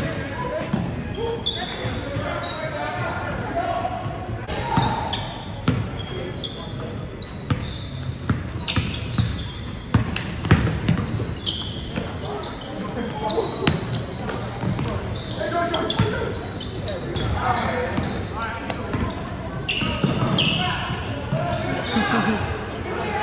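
Men call out to each other across an echoing gym.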